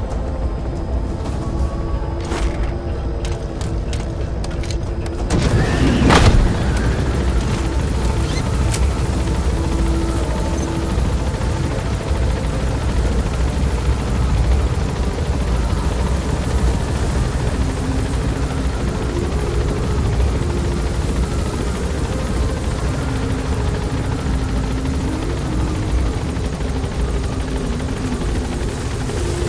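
A helicopter's engine and rotor drone steadily, heard from inside the cabin.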